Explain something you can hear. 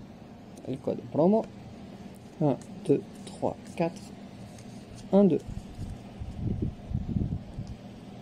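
Trading cards rustle and slide against each other as they are shuffled.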